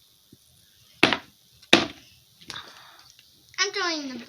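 A hand knocks on a hollow plastic helmet.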